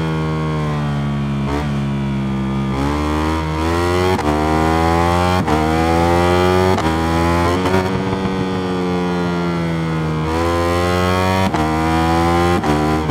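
A motorcycle engine roars loudly, rising in pitch as it revs and dropping sharply with each gear change.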